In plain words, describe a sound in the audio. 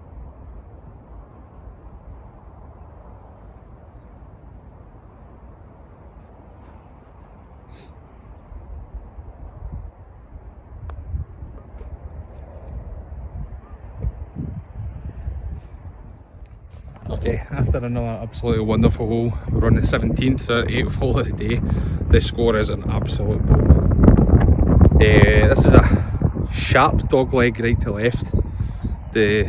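Wind blows across an open field.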